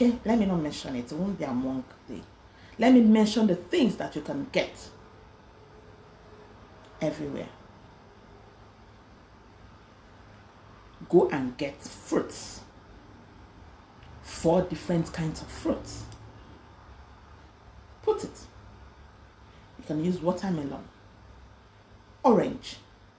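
A woman speaks close to the microphone with animation, in short bursts with pauses.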